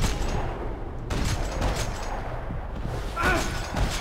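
Gunshots fire in quick bursts, echoing in a large concrete space.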